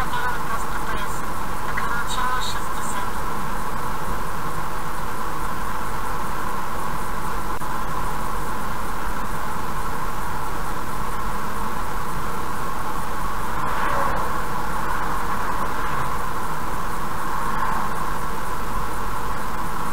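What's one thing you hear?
A car drives steadily along a road with a constant hum.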